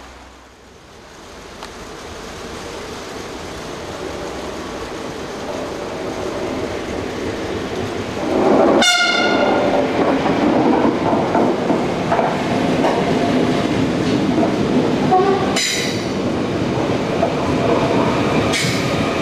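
A passenger train approaches and roars loudly past close by.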